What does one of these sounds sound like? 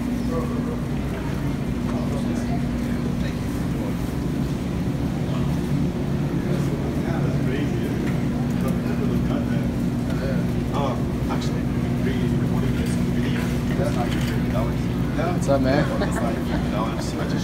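A young man speaks casually nearby.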